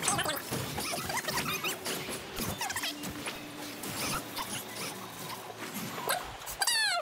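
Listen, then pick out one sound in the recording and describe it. Magic blasts crackle and whoosh in a fast fight.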